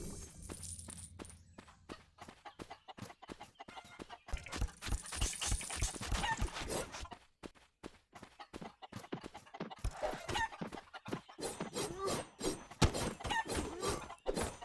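Sword slashes and hits thud repeatedly in quick succession.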